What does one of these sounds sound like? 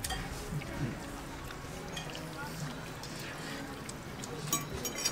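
Two people slurp noodles loudly.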